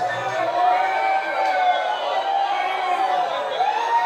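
A man shouts into a microphone.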